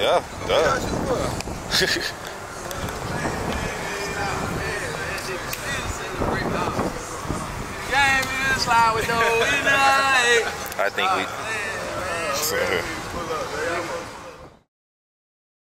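A young man raps with energy, close by.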